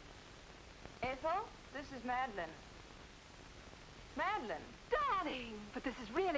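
A young woman speaks calmly into a telephone.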